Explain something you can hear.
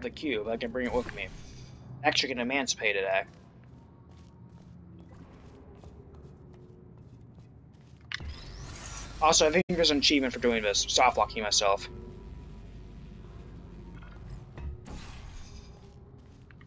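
A futuristic gun fires with a short electronic zap.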